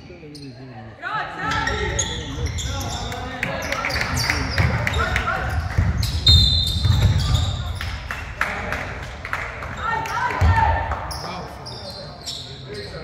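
Young players and spectators call out and cheer.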